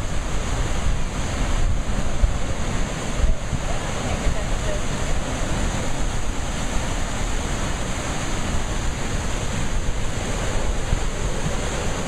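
Rough waves crash and churn against rocks outdoors.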